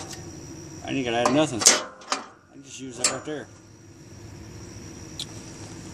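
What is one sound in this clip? Metal parts clink softly as a cable clip is fastened to a bracket.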